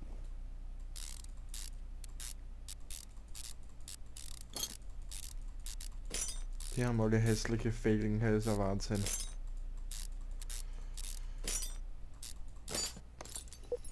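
Wheel bolts are unscrewed with a series of sharp clicks.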